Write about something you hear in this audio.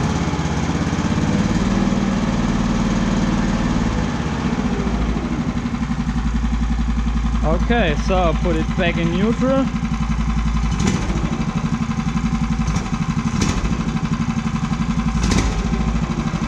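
A small petrol engine runs close by with a steady, rapid chugging.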